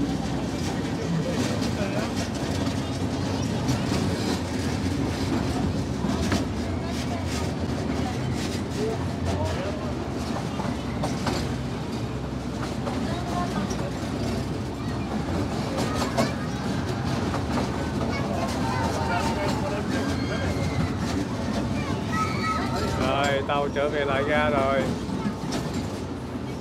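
A small open train rumbles steadily.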